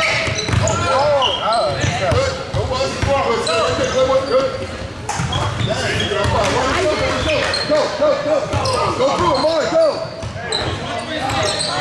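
Sneakers squeak sharply on a hardwood court, over and over.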